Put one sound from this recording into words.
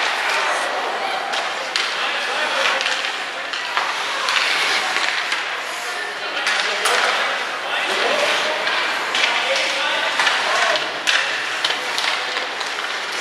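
Ice hockey skates scrape and carve across the ice in an echoing arena.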